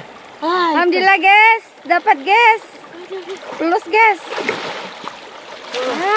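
Water splashes as a man wades through a river.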